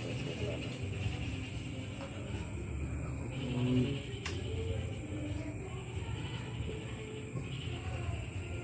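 Men talk quietly in the background.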